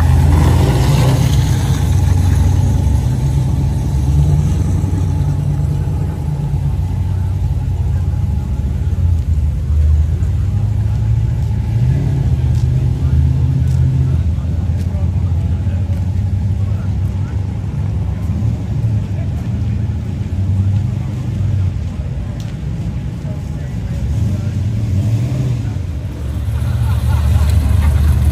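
A crowd of men and women chat outdoors nearby.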